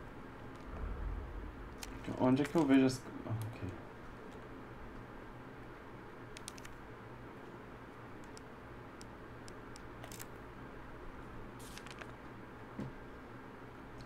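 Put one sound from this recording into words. Soft clicks sound as game menus open and pages turn.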